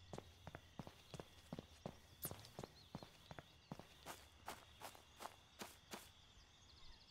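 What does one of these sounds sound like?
Footsteps tap at a steady pace on a hard path.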